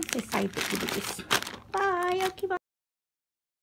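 A plastic bag of puzzle pieces crinkles and rustles.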